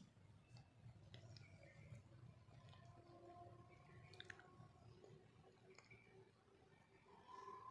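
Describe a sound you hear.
Thick sauce bubbles and simmers softly in a pan.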